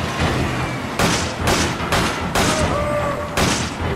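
Heavy footsteps thud on a metal floor, coming closer.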